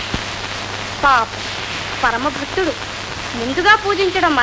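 A young boy sings a melody up close.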